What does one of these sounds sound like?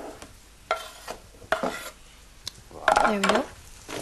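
Chopped pieces are scraped off a board into a metal bowl.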